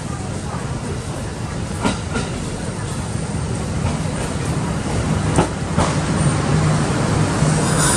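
An electric train rumbles steadily into the station, growing louder as it pulls alongside.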